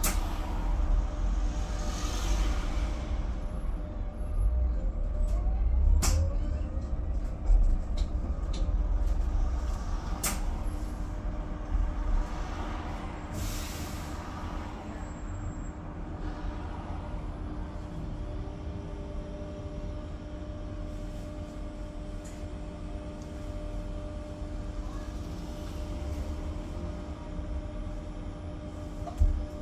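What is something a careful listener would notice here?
The bus body rattles and clicks over the road.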